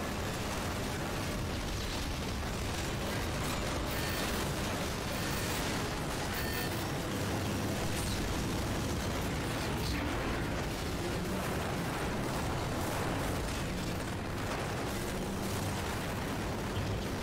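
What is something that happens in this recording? Heavy gunfire rattles rapidly and steadily.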